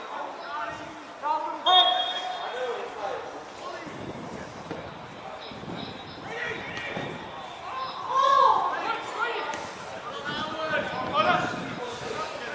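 Young players shout to each other across an open outdoor pitch.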